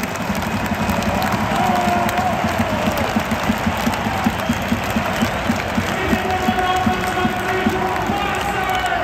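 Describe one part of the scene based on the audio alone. Many fans clap in a steady rhythm.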